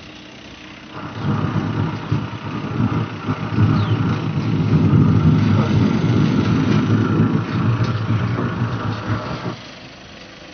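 A truck engine rumbles loudly as the truck drives up close and passes.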